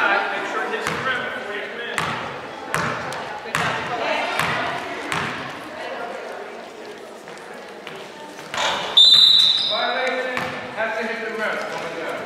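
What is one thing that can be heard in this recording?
Young girls shout and call out across the court.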